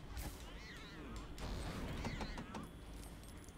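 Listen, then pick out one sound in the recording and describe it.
Small objects burst apart with sparkling chimes.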